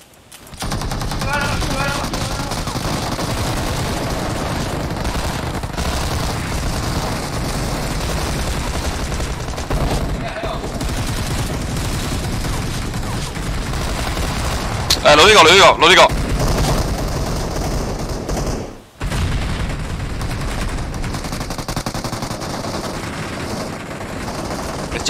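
Rapid gunfire rattles steadily.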